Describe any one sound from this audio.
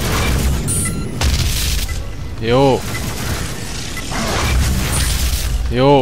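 A heavy energy gun fires with sharp electric blasts.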